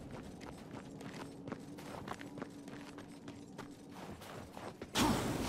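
Heavy armored footsteps thud and clank quickly on hard ground.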